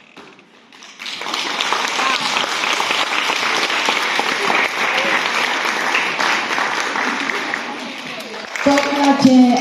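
Children in an audience chatter noisily.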